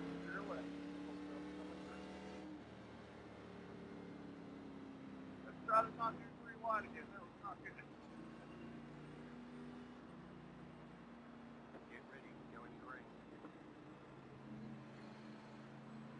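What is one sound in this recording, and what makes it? A racing car engine drones steadily at low speed.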